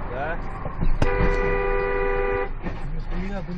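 A car horn blares loudly.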